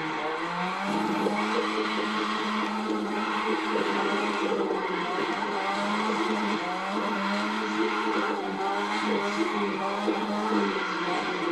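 Tyres screech as a car drifts around corners.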